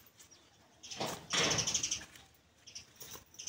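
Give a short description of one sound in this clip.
A buffalo snorts loudly close by.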